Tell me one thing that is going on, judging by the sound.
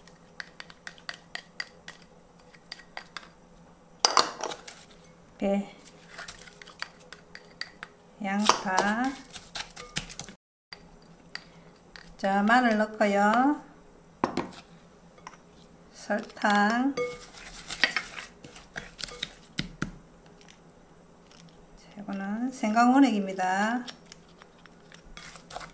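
A spatula taps and scrapes against a glass bowl.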